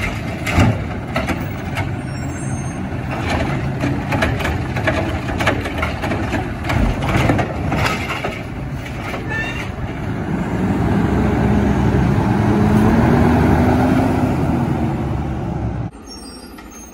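A garbage truck engine rumbles loudly nearby.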